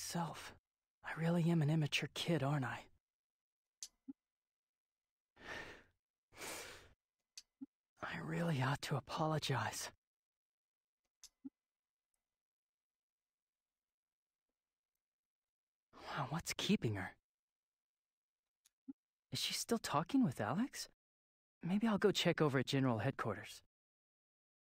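A young woman talks with animation into a microphone, in short bursts with pauses.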